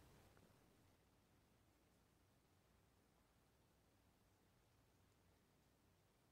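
Kittens scuffle and tumble softly on a blanket.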